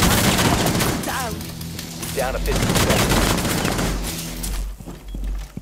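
Rapid gunfire rattles loudly against a metal shield.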